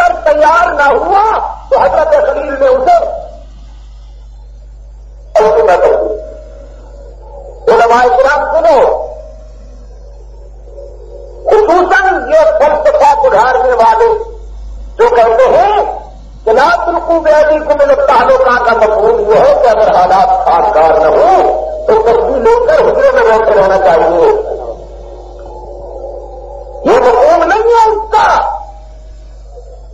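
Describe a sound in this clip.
A middle-aged man speaks calmly and close to a microphone, in phrases with pauses.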